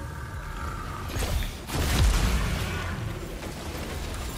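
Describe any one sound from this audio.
Gunfire bursts out in a short volley with an explosion.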